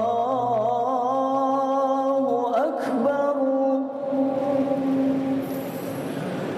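A man chants a long, drawn-out melody through a microphone, echoing in a large hall.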